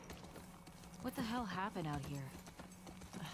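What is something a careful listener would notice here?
A young woman speaks calmly nearby.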